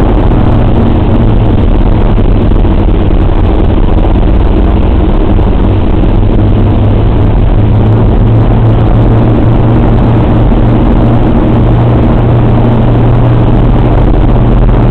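The radial piston engines of a four-engine bomber drone steadily in flight, heard from inside the fuselage.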